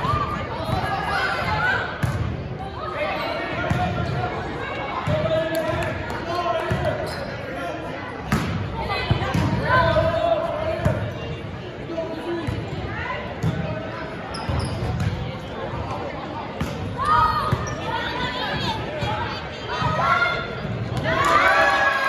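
Young women call out and chatter in a large echoing hall.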